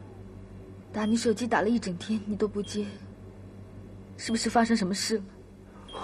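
A woman speaks in a tearful, shaky voice.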